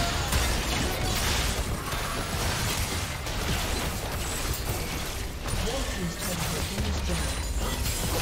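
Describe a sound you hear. Magic blasts whoosh and crackle in a fast fight.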